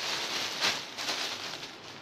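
Fabric rustles as a young woman handles a bundle of cloth.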